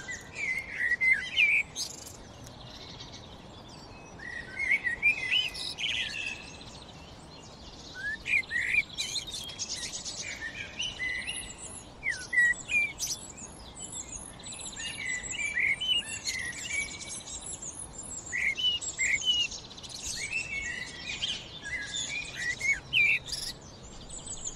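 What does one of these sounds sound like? A blackbird sings close by in fluting, warbling phrases with short pauses between them.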